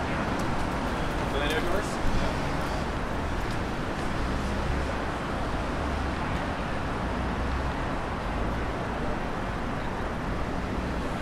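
Outdoors, traffic rumbles steadily along a city street.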